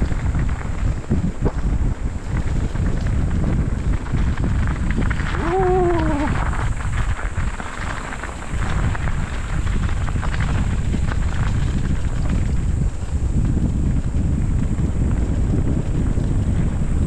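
Bicycle tyres crunch and rattle over a gravel track.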